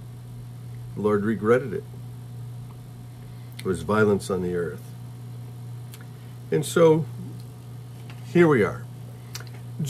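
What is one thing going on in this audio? A middle-aged man speaks calmly and close up in short phrases with pauses.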